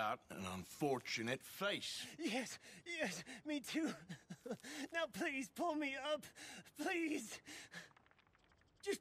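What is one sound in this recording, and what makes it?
A man pleads anxiously, calling for help.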